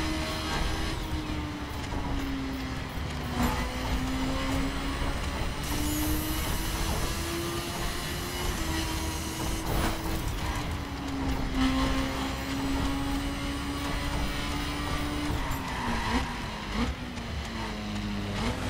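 A motorcycle engine roars at high speed, its pitch shifting with gear changes.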